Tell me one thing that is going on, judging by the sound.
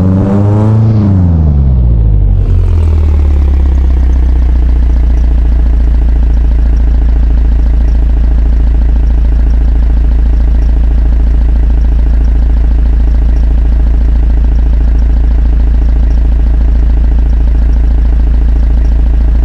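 A car engine slows down and settles into a steady, rumbling idle.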